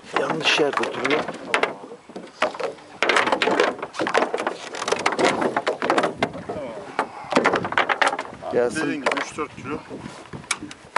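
Water laps against the side of a small boat.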